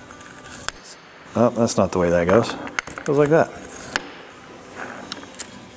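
Metal gear parts clink and knock against each other.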